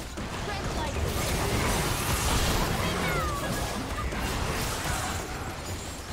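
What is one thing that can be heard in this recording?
Game spell effects crackle and whoosh in a busy fight.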